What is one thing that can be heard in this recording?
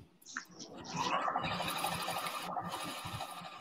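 A sewing machine whirs steadily.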